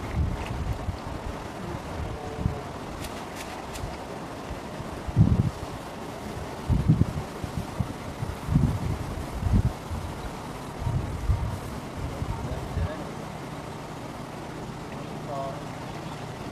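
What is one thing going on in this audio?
Water sloshes and splashes around wading legs.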